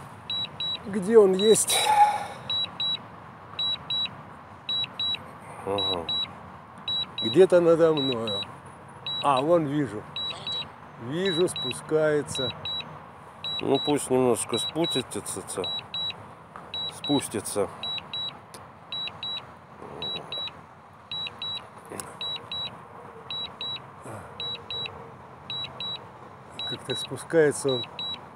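A controller beeps in quick, regular pairs.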